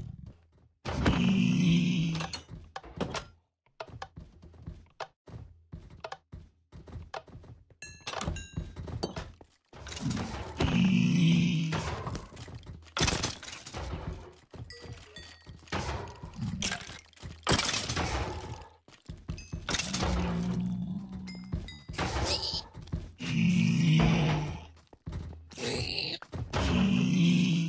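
A sword strikes creatures again and again.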